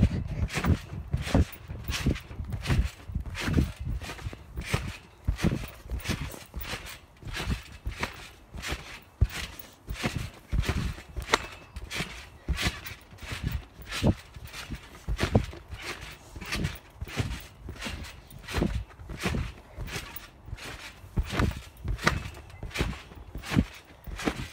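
A trampoline mat thumps rhythmically with steady bouncing.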